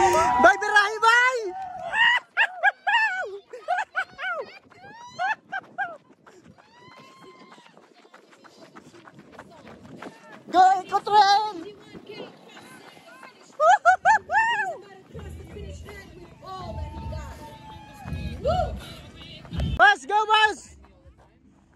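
A crowd of men and women cheers and shouts loudly outdoors.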